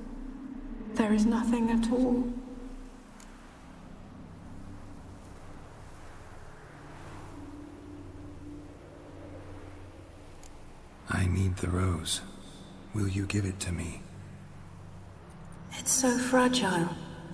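A woman speaks softly and sadly.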